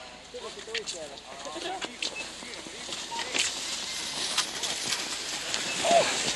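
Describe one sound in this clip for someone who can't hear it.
Skis swish and scrape over packed snow as a skier passes close by.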